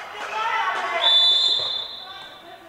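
A referee's whistle blows a short blast.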